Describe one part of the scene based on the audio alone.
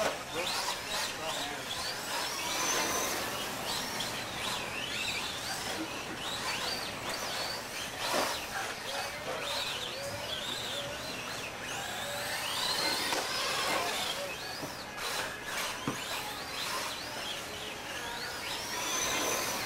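A small electric motor whines high and revs up and down as a toy car races.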